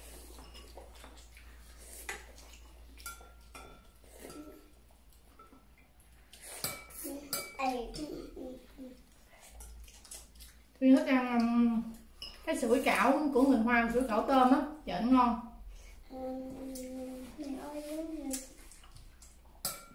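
Spoons and chopsticks clink against bowls and plates.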